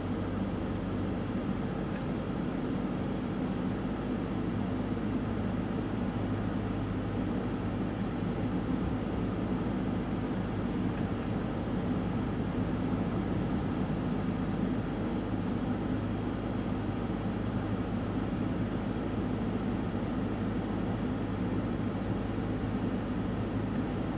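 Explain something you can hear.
Tyres roll over a rough dirt road.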